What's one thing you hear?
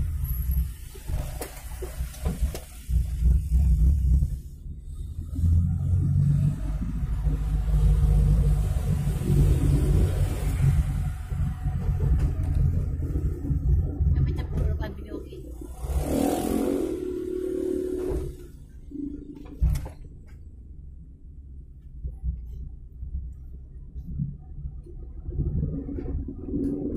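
A car engine rumbles steadily from inside the car as it drives along a road.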